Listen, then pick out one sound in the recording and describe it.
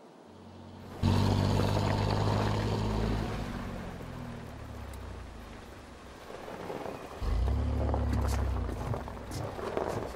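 A pickup truck engine rumbles as the truck drives off.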